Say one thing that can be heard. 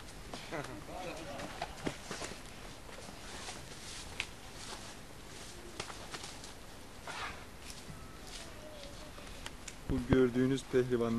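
Feet scuffle and thud on the ground as two men wrestle.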